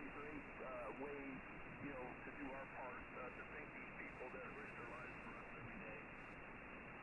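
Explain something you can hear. A man speaks calmly through a radio, thin and muffled.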